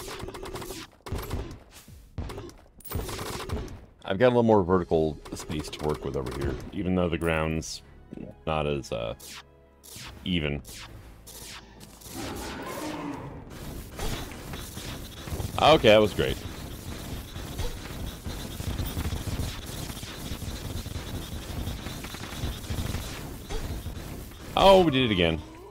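Rapid magical blasts fire in quick bursts.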